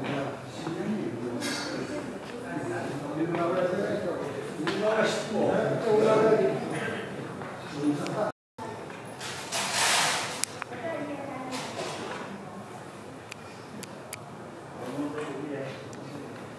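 Several adults chatter in low voices in a large echoing hall.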